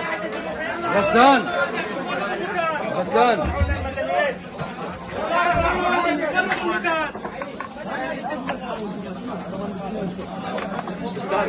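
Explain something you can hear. A crowd of people murmurs and calls out indoors.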